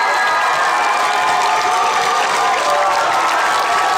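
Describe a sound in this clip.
A crowd of children claps hands.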